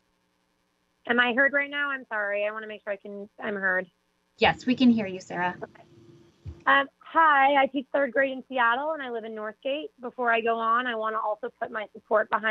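A young woman speaks steadily over an online call.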